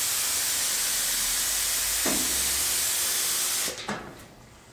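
Compressed air hisses loudly from a spray nozzle, then cuts off.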